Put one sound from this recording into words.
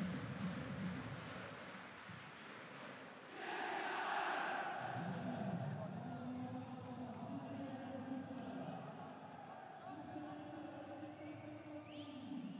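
A large stadium crowd roars and chants, swelling louder for a moment.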